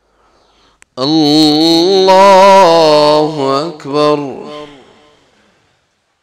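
A man chants a long call loudly through a microphone in an echoing hall.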